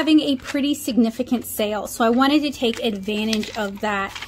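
A sheet of paper rustles as it is unfolded.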